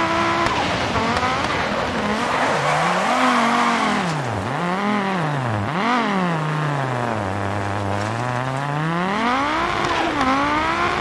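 A racing car engine rises and falls in pitch as the car slows through a bend and speeds up again.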